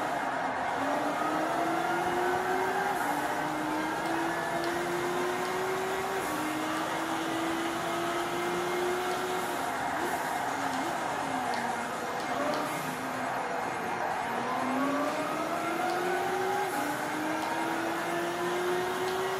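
A racing car engine revs up and shifts gears over and over through a loudspeaker.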